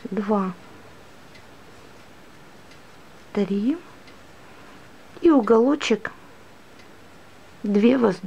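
Yarn rustles softly as a crochet hook pulls it through.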